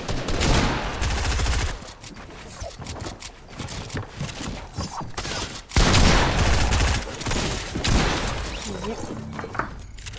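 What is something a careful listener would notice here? Rapid clicks and clatter of building pieces snapping into place.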